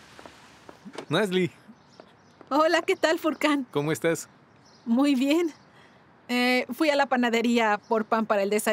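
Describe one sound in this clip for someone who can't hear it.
A young woman speaks cheerfully up close.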